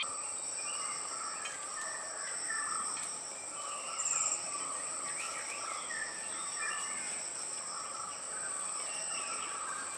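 A person walks through dry leaves and undergrowth.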